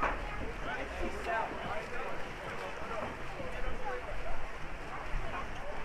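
Water splashes as swimmers kick and thrash.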